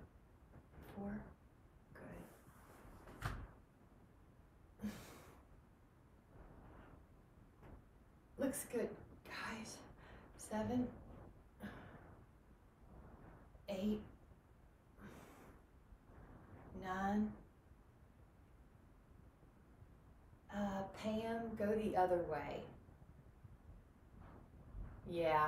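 A young woman speaks calmly and clearly, close by, in short phrases with pauses.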